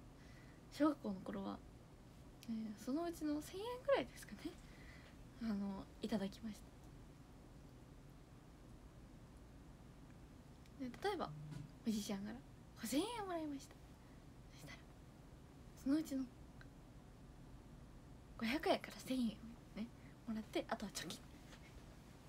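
A young woman talks softly and cheerfully into a close microphone, with pauses.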